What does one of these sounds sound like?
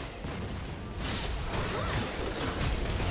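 Game spell effects whoosh and clash in a fight.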